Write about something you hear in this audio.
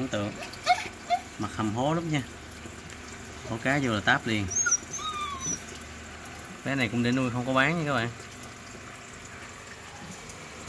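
Air bubbles fizz steadily in water.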